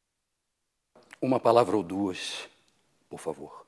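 A man speaks slowly and gravely, close by.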